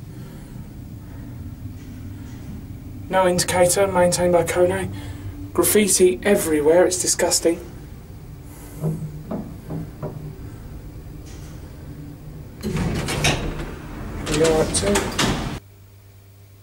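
An elevator motor hums steadily.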